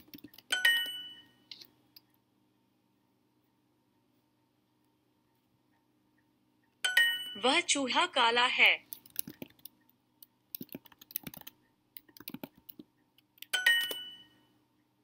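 A short bright electronic chime rings.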